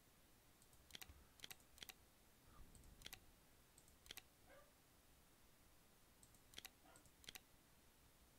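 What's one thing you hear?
Menu buttons click sharply, again and again.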